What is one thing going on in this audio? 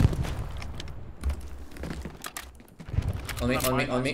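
A grenade explodes nearby with a loud, heavy boom.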